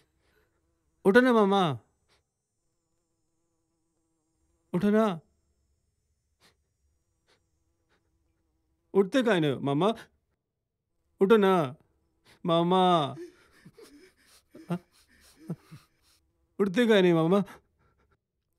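A man cries out and wails in anguish, close by.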